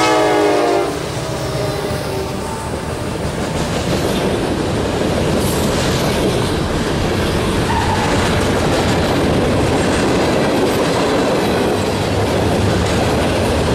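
Freight cars rumble and clatter along the rails.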